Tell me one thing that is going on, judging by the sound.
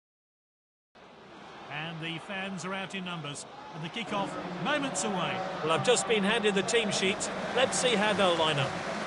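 A large stadium crowd cheers and chants.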